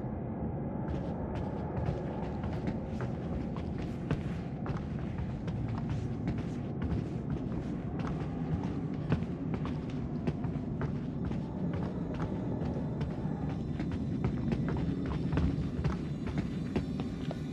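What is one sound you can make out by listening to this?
Footsteps creak on wooden floorboards.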